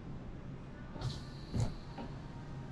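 A car's roof latch clicks.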